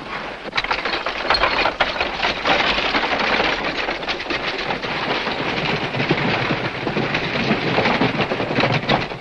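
Many horses' hooves thud and clatter at a gallop.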